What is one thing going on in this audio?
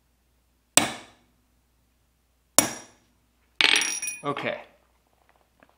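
A hammer strikes metal with sharp, ringing blows.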